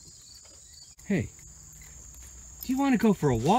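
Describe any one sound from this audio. A dog howls loudly up close.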